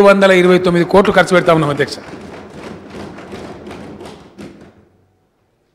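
A middle-aged man speaks calmly and formally into a microphone in a large echoing hall.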